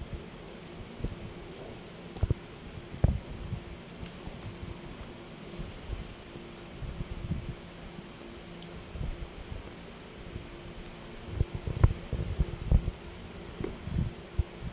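A fork clinks against a metal bowl.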